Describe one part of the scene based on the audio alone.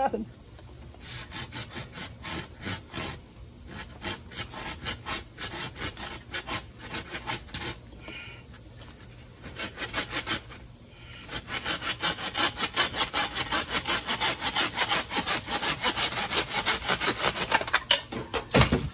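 A hand saw rasps quickly back and forth through bamboo.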